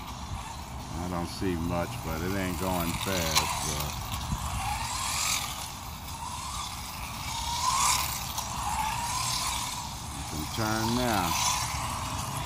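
A toy car's electric motor whines and revs in quick bursts.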